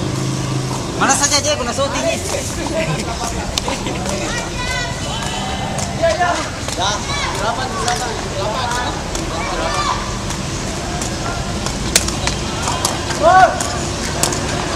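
Young men shout and talk nearby outdoors.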